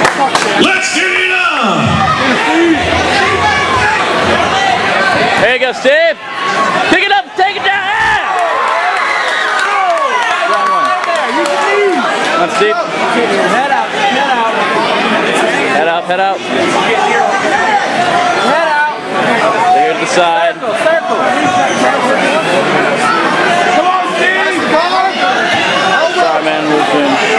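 A crowd shouts and cheers loudly throughout, close by.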